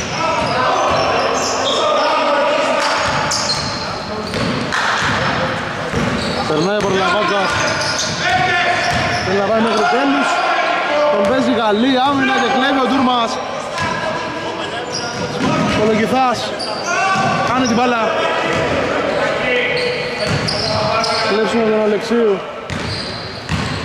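Men shout to each other across a large echoing gym.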